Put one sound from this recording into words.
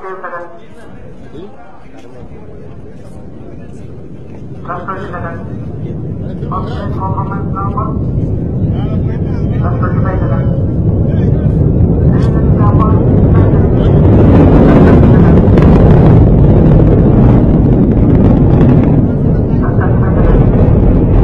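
A rocket engine roars with a deep rumble that grows louder.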